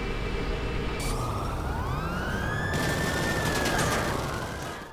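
A police siren wails nearby.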